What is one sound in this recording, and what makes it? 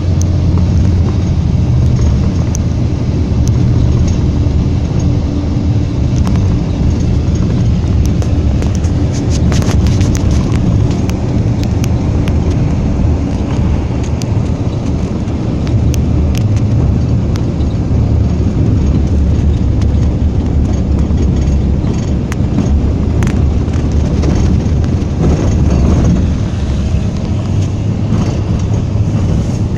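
Small knocks and rattles sound inside the car.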